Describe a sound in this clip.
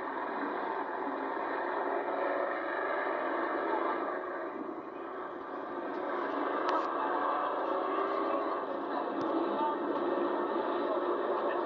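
Race car engines roar steadily outdoors.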